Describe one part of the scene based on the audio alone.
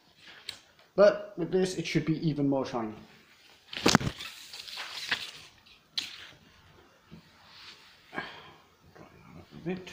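A cloth swishes and rubs across a hard floor.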